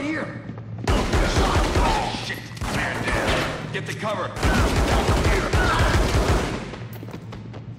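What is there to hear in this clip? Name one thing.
Gunshots fire in rapid loud bursts.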